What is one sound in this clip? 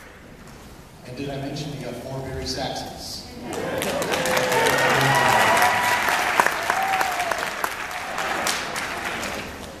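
A middle-aged man speaks through a microphone in a large hall.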